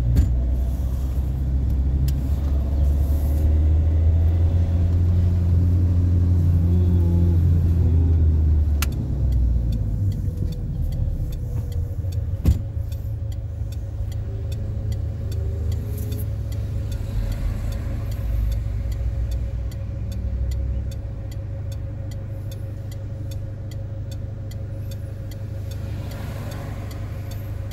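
A car engine hums steadily from inside the car, louder while driving and quieter while idling.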